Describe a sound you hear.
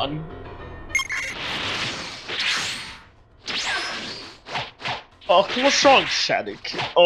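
Energy blasts whoosh and burst in quick succession.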